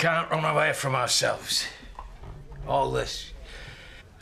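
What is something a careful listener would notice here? A middle-aged man speaks tensely nearby.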